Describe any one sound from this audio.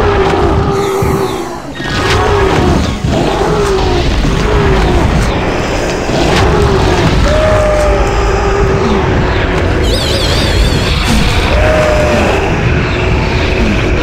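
Fantasy game combat effects crackle and clash.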